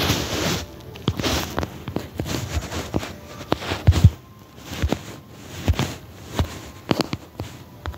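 Plant stalks snap and rustle as they are broken.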